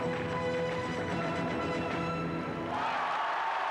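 Dancers' hard shoes tap rhythmically on a stage.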